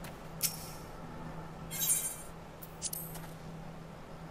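Short electronic chimes ring out as a game menu opens and a choice is made.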